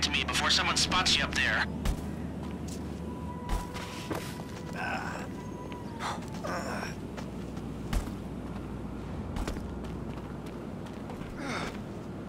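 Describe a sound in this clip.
Footsteps scuff across a gravel rooftop.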